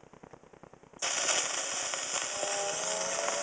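A gramophone record hisses loudly as the needle drops into the groove.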